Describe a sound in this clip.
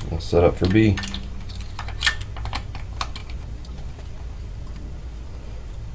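A ratchet wrench clicks in short bursts.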